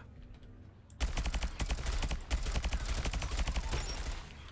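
A rapid-fire energy gun shoots in fast, steady bursts.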